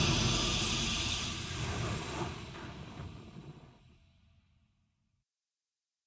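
A triumphant game victory jingle plays and fades away.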